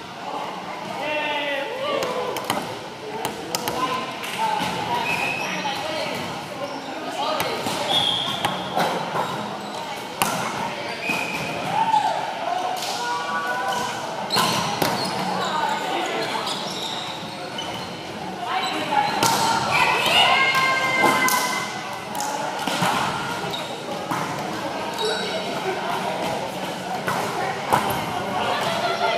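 A volleyball thuds against hands and arms again and again.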